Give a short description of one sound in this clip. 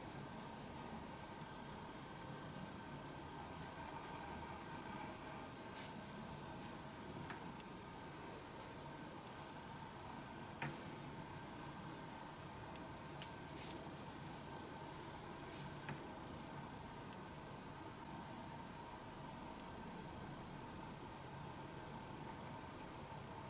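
Hands softly rub and press a towel.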